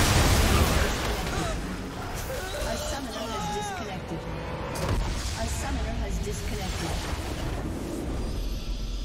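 Game spell effects crackle and boom in a busy fight.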